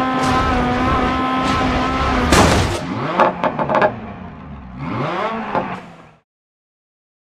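A rally car engine roars steadily, then revs and sputters before cutting out.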